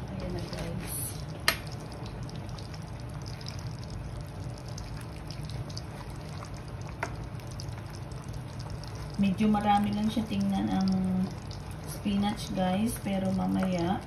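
A metal ladle stirs leafy greens in a metal pot of broth.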